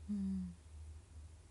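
A young woman makes a short murmur close by.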